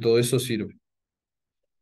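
A young man speaks briefly and calmly into a microphone.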